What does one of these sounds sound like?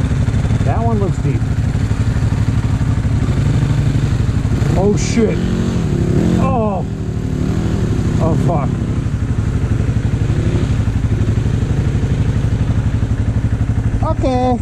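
A motorbike engine chugs steadily close by.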